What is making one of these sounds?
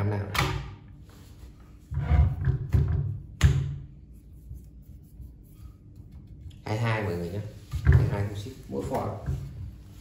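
A wooden figure knocks and scrapes against a wooden stand.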